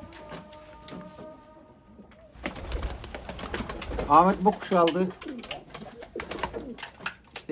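Pigeons flap their wings.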